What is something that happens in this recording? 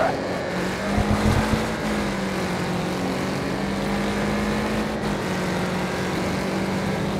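A car engine drones steadily at high revs.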